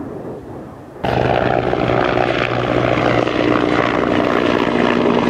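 A helicopter's rotor thumps steadily as it flies by.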